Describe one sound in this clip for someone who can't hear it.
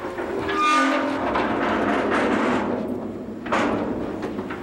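A metal trailer gate rattles and clangs open.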